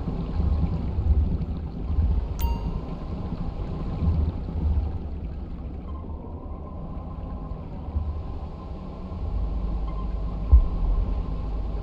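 Water bubbles and gurgles around a submarine.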